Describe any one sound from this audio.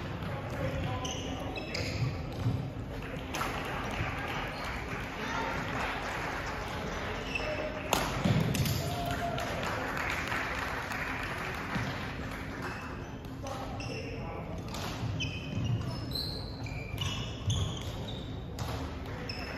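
Shoes squeak on a wooden court floor.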